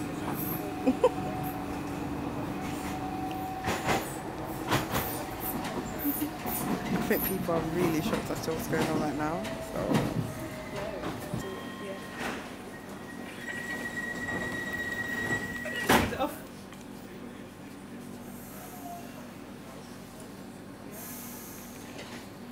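A train hums and rumbles as it rolls along.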